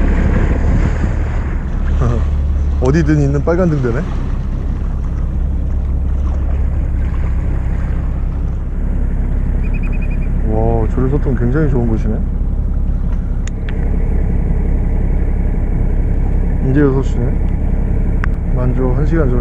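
Water splashes and washes against a boat hull.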